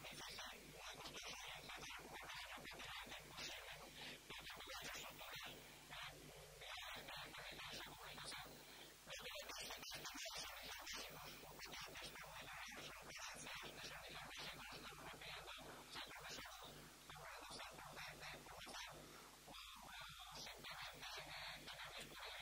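An older man speaks calmly into a microphone, heard through loudspeakers in a large echoing hall.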